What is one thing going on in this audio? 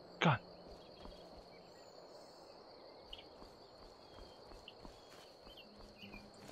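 Footsteps crunch softly on gravel.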